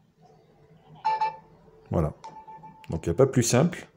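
A phone gives a short electronic chime.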